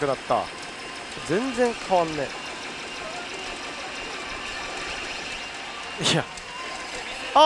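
A pachinko machine plays loud electronic sound effects with sweeping tones.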